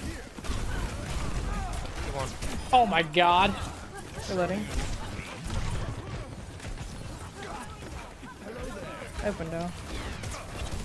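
Game gunfire and explosions boom in quick bursts.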